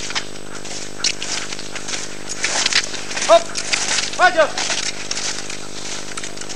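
Cross-country skis swish over snow close by.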